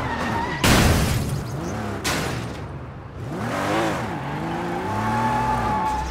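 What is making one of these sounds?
Tyres screech while a car skids around a corner.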